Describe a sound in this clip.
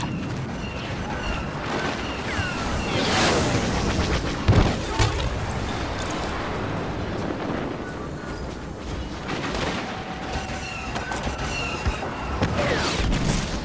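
Blaster shots zap and crackle in rapid bursts.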